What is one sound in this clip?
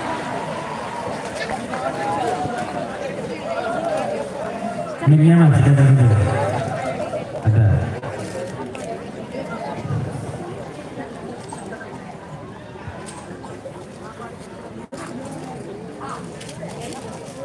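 Men sing together through loudspeakers outdoors.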